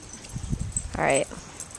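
A dog whines briefly.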